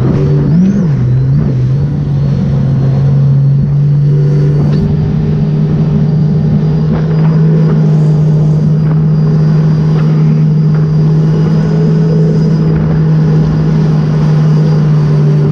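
A jet ski engine drones steadily, revving briefly at first.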